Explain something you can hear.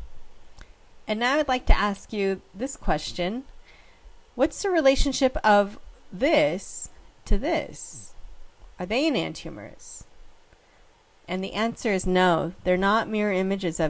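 A young woman speaks calmly and clearly into a close microphone, explaining.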